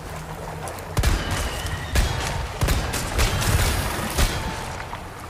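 A pistol fires several sharp shots that echo.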